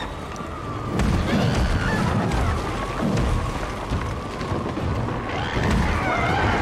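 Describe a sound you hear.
Heavy thumps and rumbles sound as a large creature crawls across rubble.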